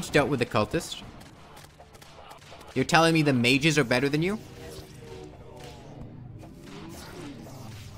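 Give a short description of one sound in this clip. Game battle effects crackle and zap.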